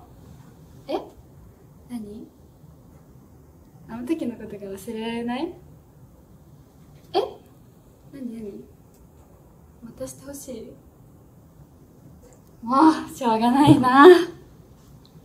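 A young woman speaks softly and playfully, close by.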